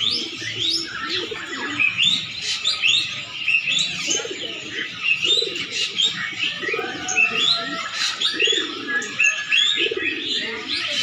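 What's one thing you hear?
Small caged birds chirp and twitter rapidly throughout.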